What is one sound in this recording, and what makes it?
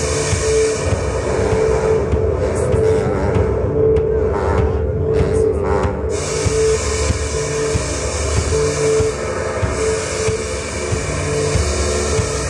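A drummer plays a drum kit.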